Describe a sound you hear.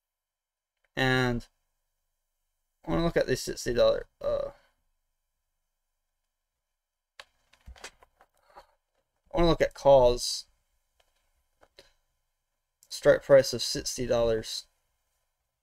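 A man speaks calmly in short bursts into a close microphone.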